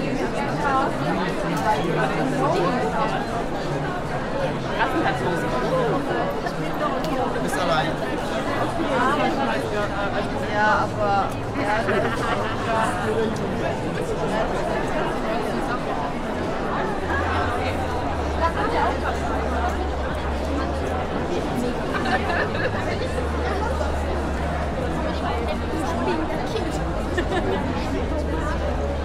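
A crowd of people chatters all around in a large echoing hall.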